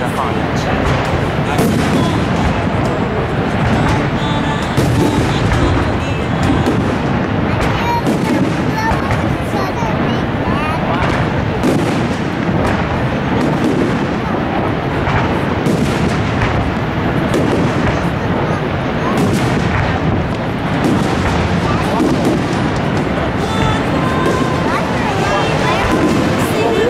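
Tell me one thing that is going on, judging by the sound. Fireworks boom and crackle continuously overhead.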